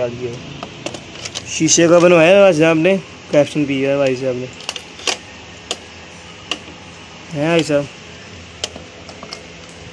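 Metal washers clink as a hand rummages through them.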